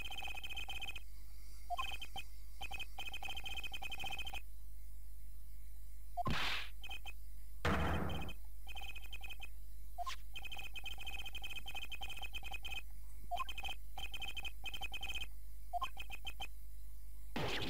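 Rapid electronic blips chirp as dialogue text is typed out.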